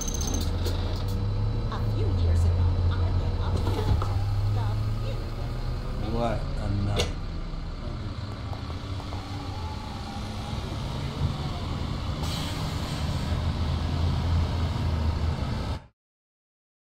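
A bus engine hums steadily at low speed.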